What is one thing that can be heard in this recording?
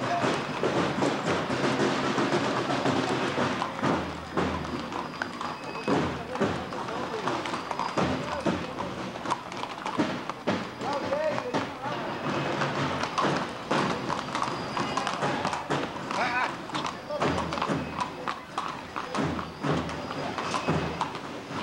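Horse hooves clop on a paved street.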